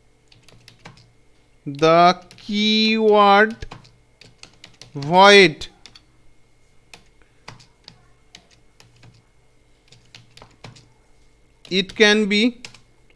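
Keys on a keyboard click and tap in quick bursts.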